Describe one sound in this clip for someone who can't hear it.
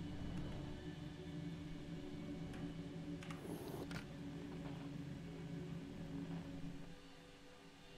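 A spacecraft engine hums and rumbles steadily.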